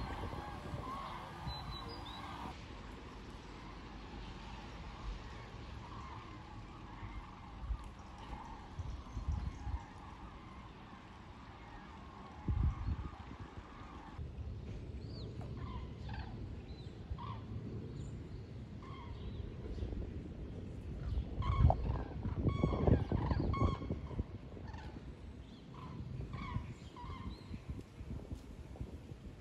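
A flock of geese honks overhead.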